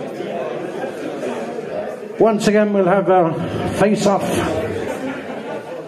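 A crowd murmurs and chatters in a lively room.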